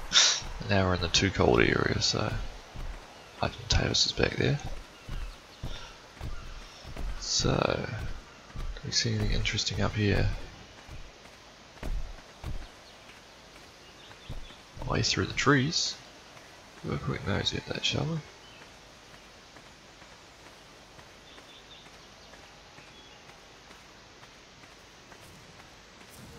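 Footsteps tread over rock and through undergrowth.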